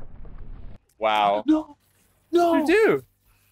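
A young man shouts in surprise into a microphone.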